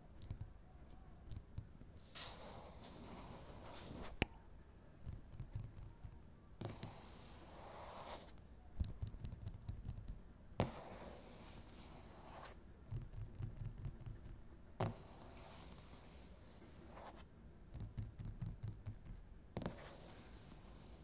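Fingertips tap and drum quickly on a hard surface.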